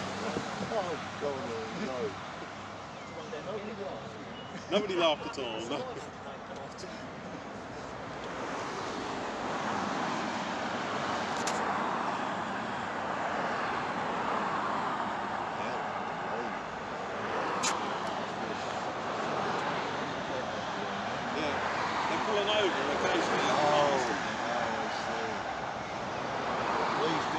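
Cars and lorries rush past on a motorway below, with a steady roar of tyres.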